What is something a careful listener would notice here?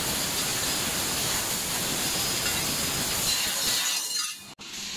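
A laser cutter hisses steadily while cutting metal.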